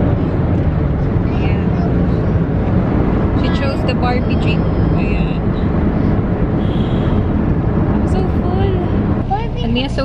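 A car engine hums steadily with road rumble inside a moving car.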